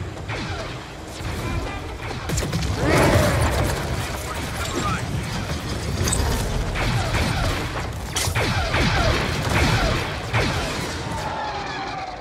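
Blasters fire and energy bursts crackle in a fast fight.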